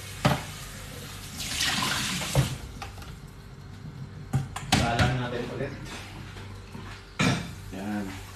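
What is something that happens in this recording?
Metal pans clatter and knock.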